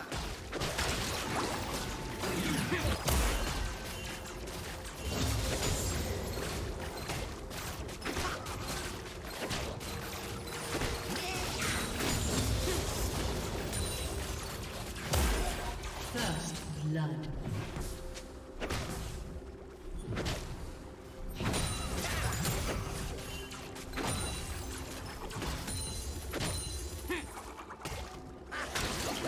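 Weapons clash and strike repeatedly in a game fight.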